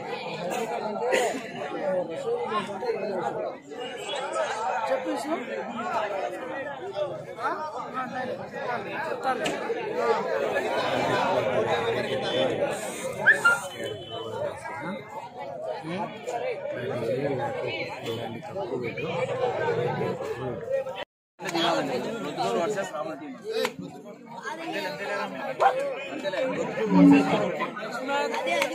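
A large outdoor crowd chatters and calls out.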